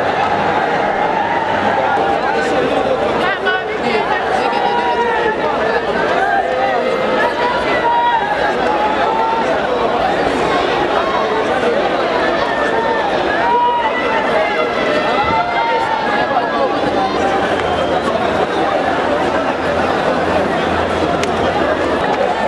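A large crowd outdoors cheers and shouts loudly.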